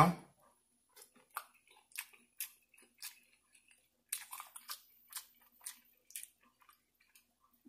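A man chews and smacks his lips loudly, close to a microphone.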